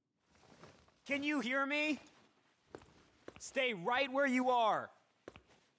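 A young man calls out loudly and urgently.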